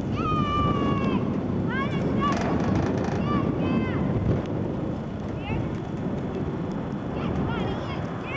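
A young girl calls out in a high voice outdoors.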